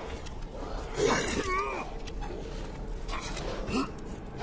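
A creature snarls and growls up close.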